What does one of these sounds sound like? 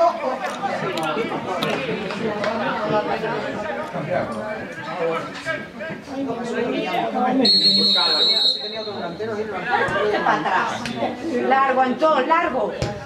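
Boys and men shout and call out outdoors.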